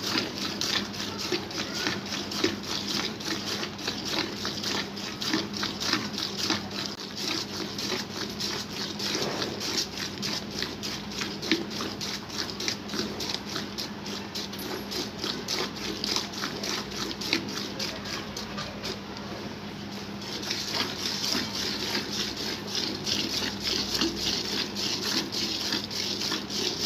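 Jets of milk squirt by hand into a metal pail.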